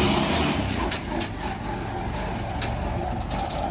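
A cart's wheels roll and rattle over a dirt track.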